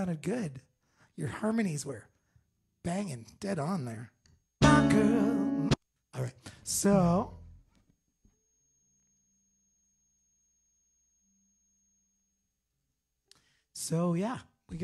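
A man sings close into a microphone in short phrases.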